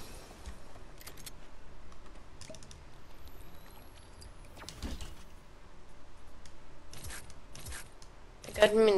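Short electronic chimes and clicks sound as items are picked up.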